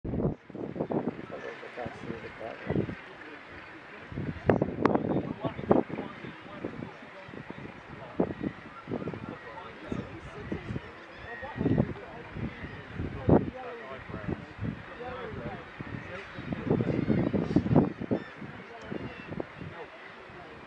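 A large colony of seabirds calls and chatters noisily on a cliff.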